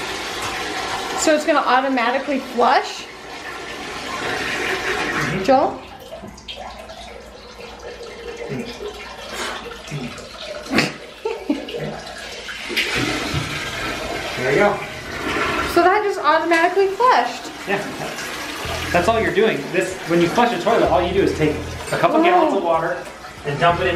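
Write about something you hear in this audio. Water gushes from a hose into a toilet bowl.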